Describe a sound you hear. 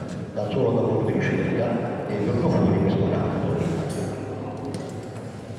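An elderly man speaks into a microphone, heard over a loudspeaker in an echoing hall.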